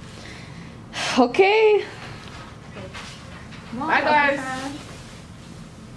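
A young woman exclaims loudly.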